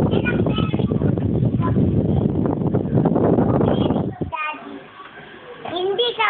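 A young girl sings close by.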